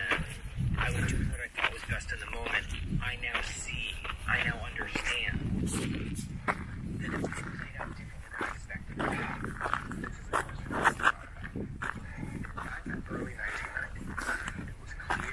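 Footsteps crunch on dry, rocky ground.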